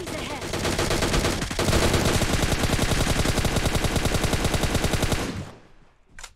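Rapid gunfire crackles loudly.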